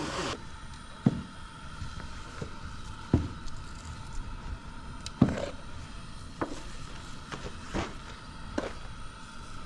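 A metal tin knocks now and then as something is shaken from it.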